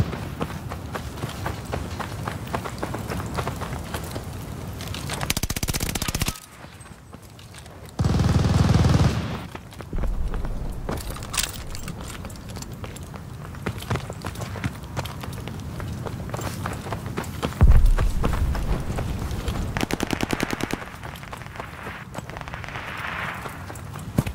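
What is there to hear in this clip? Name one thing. Footsteps run on sand and gravel.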